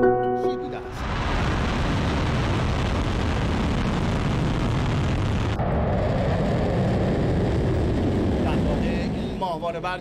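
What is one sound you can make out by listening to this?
A rocket engine roars loudly as it lifts off.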